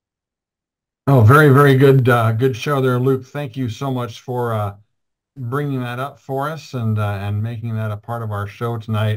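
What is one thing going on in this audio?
A middle-aged man talks calmly and close to a microphone.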